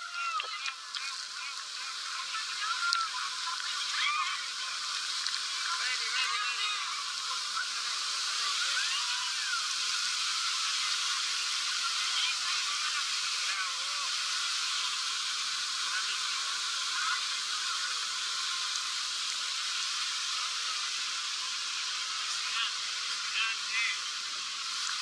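Young men and women shout and scream with excitement close by.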